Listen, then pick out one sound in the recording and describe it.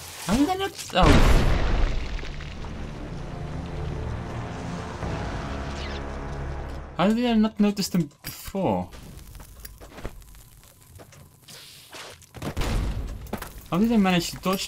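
A stick of dynamite explodes with a deep, rumbling boom.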